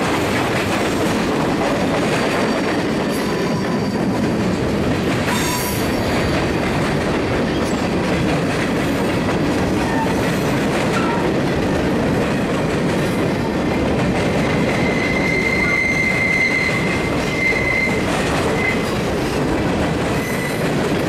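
Freight cars rumble and clatter steadily past on the rails close by.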